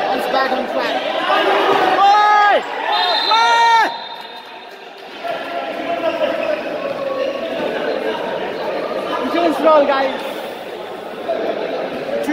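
A crowd of spectators murmurs and cheers in a large echoing hall.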